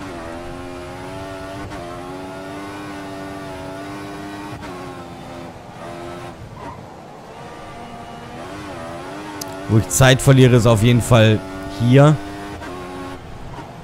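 A racing car engine whines steadily, rising and falling in pitch as gears change.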